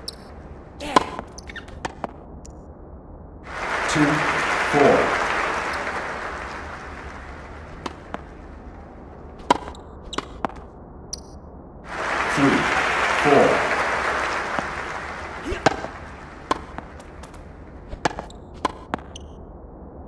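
A tennis ball is struck with sharp pops.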